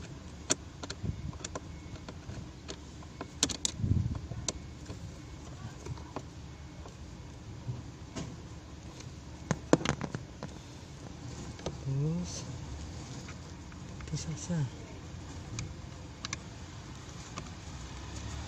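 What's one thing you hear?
Plastic parts click and tap as hands handle them.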